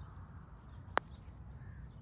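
A putter taps a golf ball with a sharp click.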